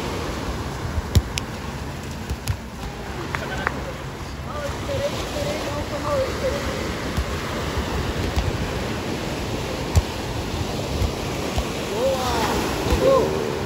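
Waves wash and break on the shore.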